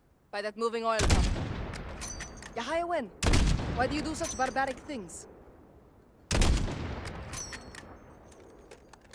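A rifle fires loud shots that echo and roll away.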